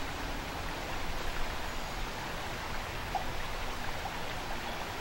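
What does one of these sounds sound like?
A shallow river rushes and gurgles over rocks.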